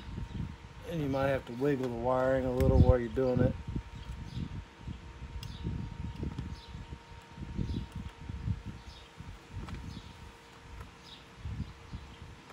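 Fingers work a plastic wiring connector loose with small clicks and rattles.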